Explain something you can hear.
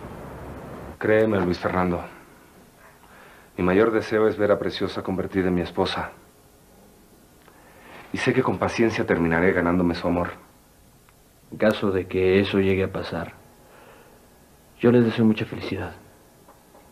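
A man speaks calmly and seriously.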